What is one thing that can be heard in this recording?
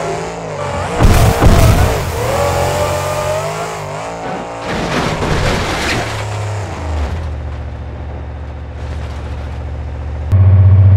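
A monster truck crashes and tumbles with heavy thuds.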